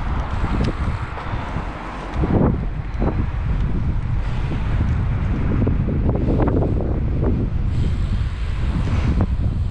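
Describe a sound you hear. Tyres roll steadily over rough tarmac.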